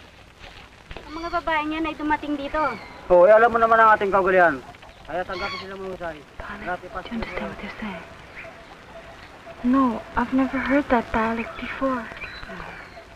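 A woman talks with animation nearby.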